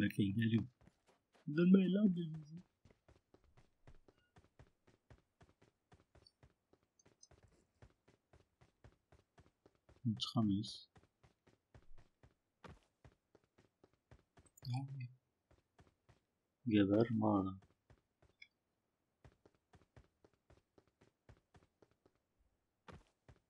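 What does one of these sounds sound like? Footsteps patter on sand in a video game.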